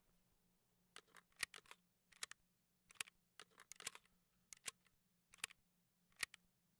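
Short clicks sound now and then.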